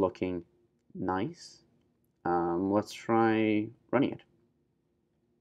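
A young man speaks calmly and close into a microphone.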